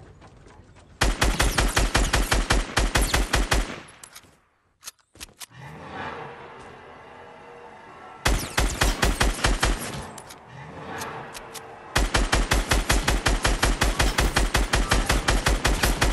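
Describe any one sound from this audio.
Rapid gunfire rattles in fast bursts.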